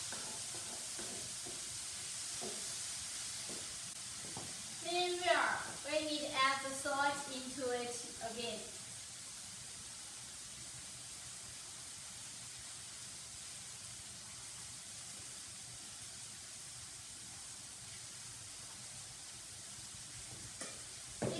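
Food sizzles in a frying pan.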